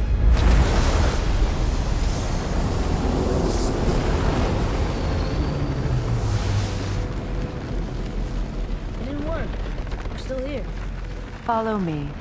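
A deep, roaring rumble swells and then slowly fades away.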